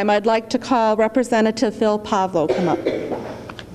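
A woman speaks steadily into a microphone, heard through loudspeakers in a large hall.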